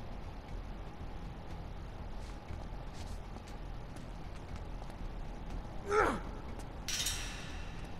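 Footsteps echo on a hard stone floor in a large tunnel.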